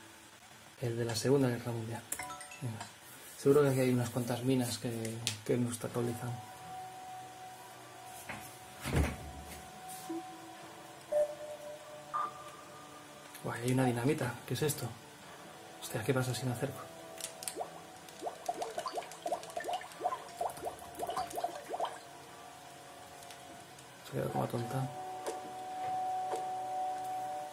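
Electronic game music and chimes play from a television speaker.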